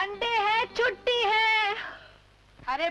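A young woman cries out in distress.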